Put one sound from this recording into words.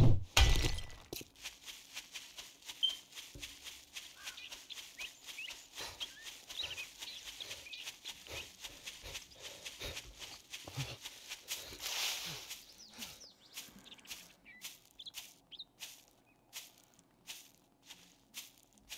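Footsteps crunch steadily through grass and brush.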